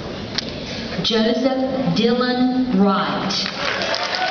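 A woman reads out names over a loudspeaker in a large echoing hall.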